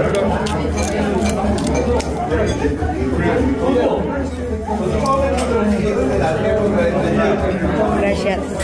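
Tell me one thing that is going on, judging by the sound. A man talks nearby over a steady hubbub of voices.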